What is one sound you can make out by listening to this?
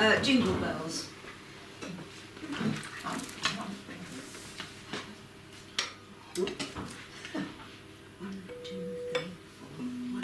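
A woman talks calmly to a group.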